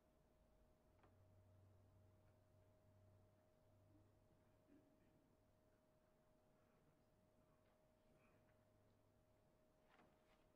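A brass instrument plays low, soft notes.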